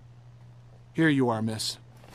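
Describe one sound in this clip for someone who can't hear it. A man speaks politely, close by.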